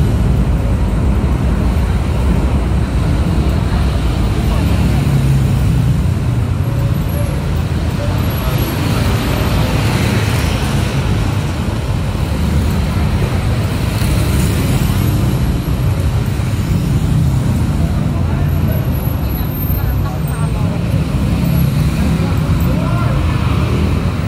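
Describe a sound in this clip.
Traffic rumbles steadily on a busy city street outdoors.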